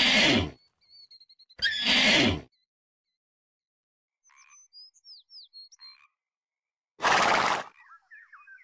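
A horse snorts sharply.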